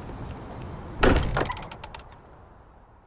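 A heavy metal door slides open with a loud rumble.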